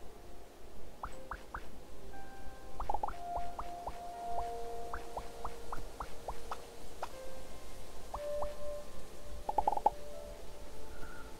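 Short electronic game sound effects chime and blip.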